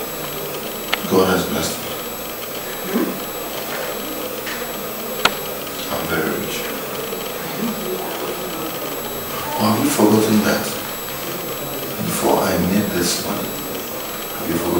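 A man speaks in a low, troubled voice, close by.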